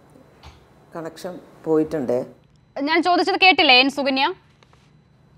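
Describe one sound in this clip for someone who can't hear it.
A middle-aged woman speaks briefly over a remote call.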